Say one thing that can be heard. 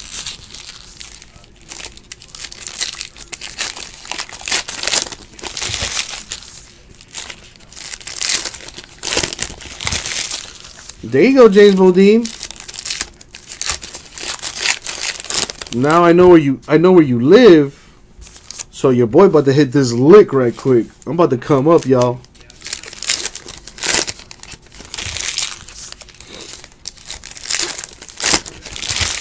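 Foil wrappers crinkle and rustle close by.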